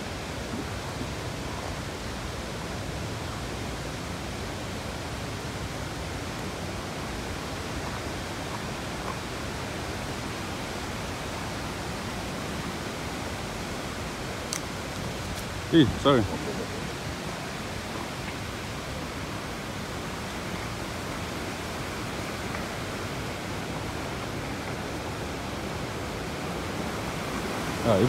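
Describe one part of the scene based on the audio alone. Footsteps crunch over dry stones and leaves.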